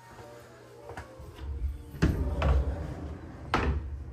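A wooden door bumps and swings open.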